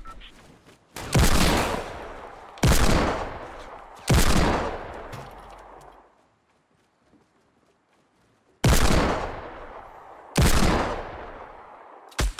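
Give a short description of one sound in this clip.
A shotgun fires loud single blasts that echo away.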